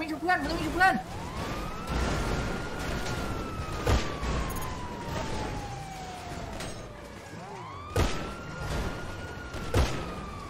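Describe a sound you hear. A car engine revs up and whines down.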